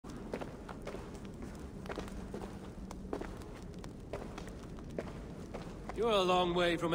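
Footsteps crunch slowly over stony ground.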